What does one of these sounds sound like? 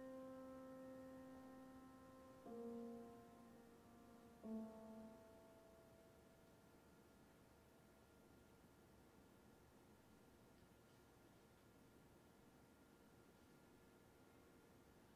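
A piano plays slow chords that ring and slowly fade.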